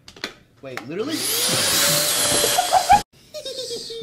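A handheld vacuum blower whirs loudly with a rising whine.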